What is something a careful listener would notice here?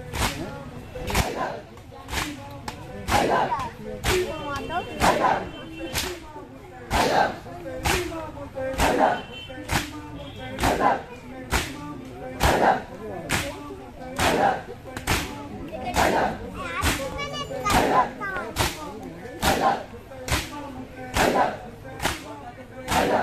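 A crowd of men chants loudly in unison outdoors.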